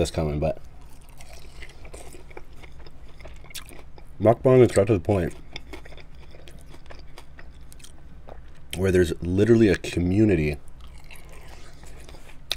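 A man bites into and chews a chicken wing close to a microphone.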